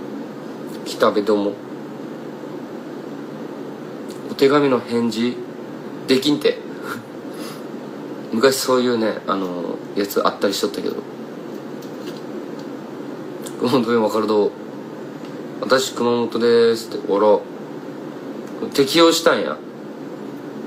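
A young man speaks calmly in short bursts, close to a phone microphone.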